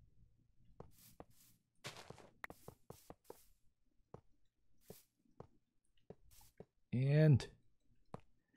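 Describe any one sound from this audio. A metal rail clunks as it is set down.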